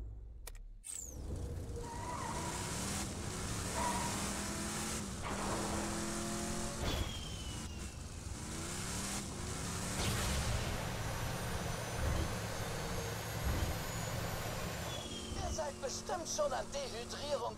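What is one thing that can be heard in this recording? A vehicle engine rumbles and roars as it drives over sand.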